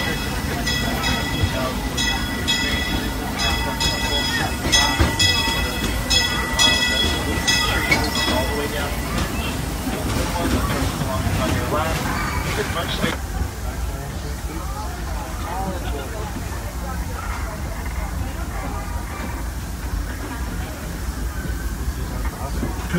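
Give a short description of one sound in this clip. A small train rumbles and clatters steadily along its track.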